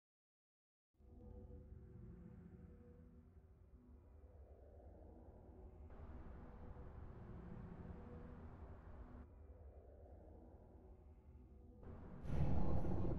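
Soft, low music plays steadily.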